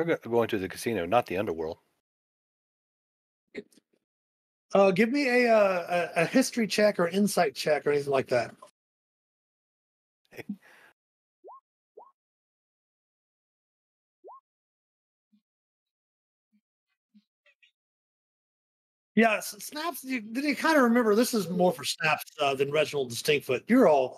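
Men talk with animation over an online call, in bursts with pauses between.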